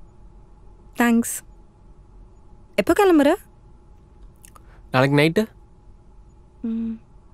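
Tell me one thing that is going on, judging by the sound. A young woman speaks softly in short phrases, close by.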